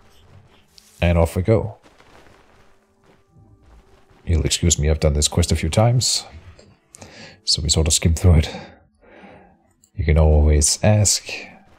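A man talks with animation close to a microphone, in short bursts.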